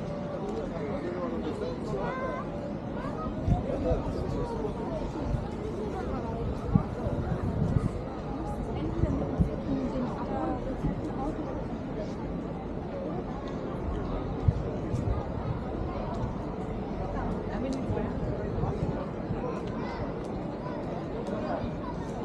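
Footsteps tap on pavement as a person walks along.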